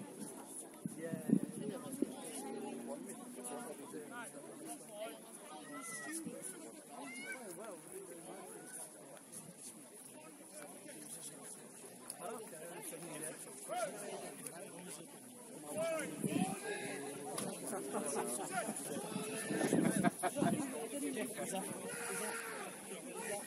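Men and women on the sideline talk and call out nearby, outdoors.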